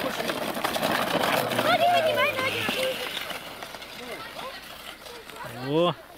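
A sled slides down packed snow.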